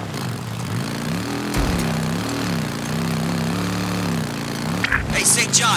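A motorcycle engine hums and revs up and down steadily.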